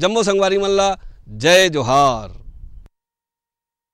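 A man sings loudly with long held notes.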